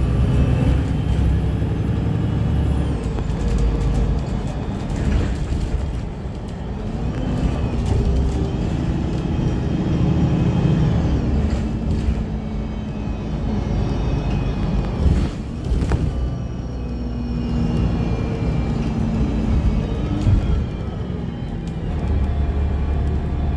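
Tyres roll and whoosh on the road surface.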